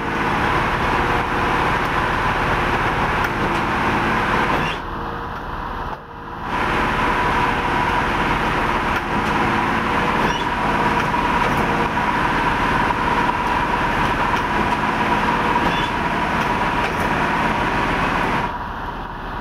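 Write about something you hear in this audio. An electric locomotive hums as it approaches along the tracks.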